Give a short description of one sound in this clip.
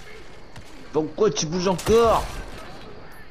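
Gunshots crack and splinter wood.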